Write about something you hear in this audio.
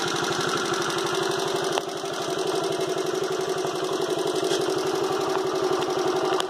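A small motorcycle engine idles with a rapid, steady putter close by.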